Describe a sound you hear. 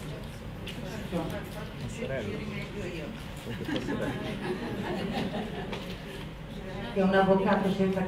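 A woman speaks into a microphone, heard through loudspeakers in a large room.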